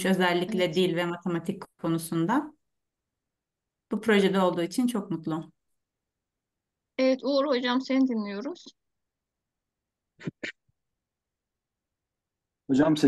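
A woman speaks through an online call in short bursts, with pauses between.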